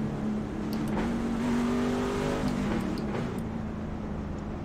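Other race cars roar past close by.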